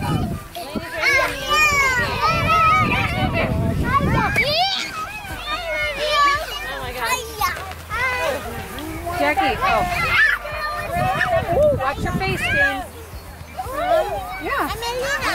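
Young children shout and squeal excitedly close by.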